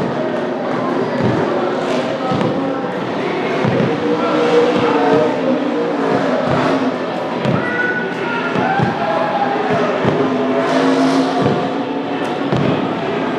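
Car tyres spin and screech in the distance.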